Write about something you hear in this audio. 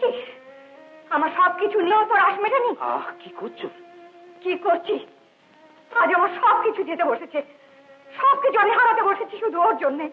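A middle-aged woman speaks, close by.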